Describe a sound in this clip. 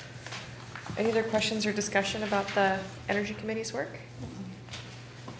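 A woman speaks calmly from across a room.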